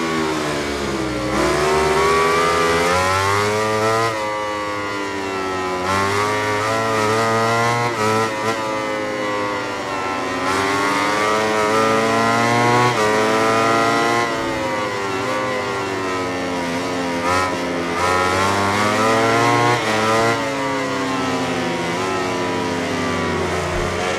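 A motorcycle engine roars at high revs, rising and falling in pitch as it shifts gears and brakes into corners.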